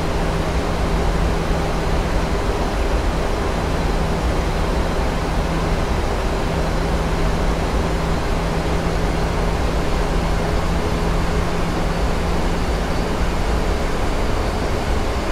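A jet airliner roars with steady engine and wind noise, heard from inside the cockpit on descent.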